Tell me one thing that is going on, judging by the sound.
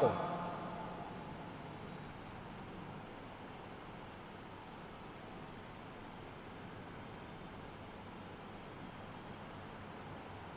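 A marker squeaks faintly across a whiteboard.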